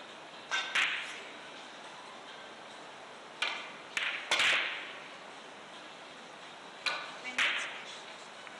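Billiard balls click sharply against each other and the cushions.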